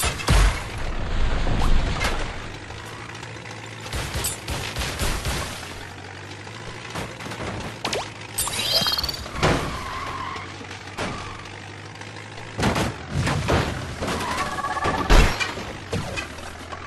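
A toy-like car engine hums steadily.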